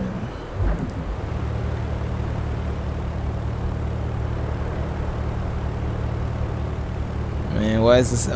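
A sports car engine idles with a steady low rumble.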